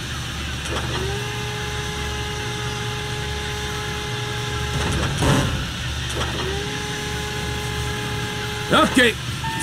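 A hydraulic lift whines as a heavy load is raised and lowered.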